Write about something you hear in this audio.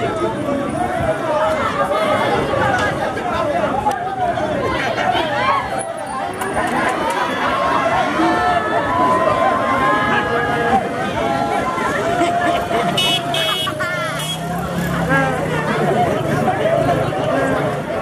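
Several men talk loudly and excitedly close by, outdoors.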